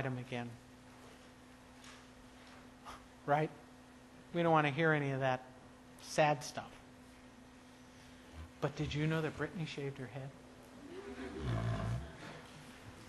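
A middle-aged woman speaks calmly, pausing often.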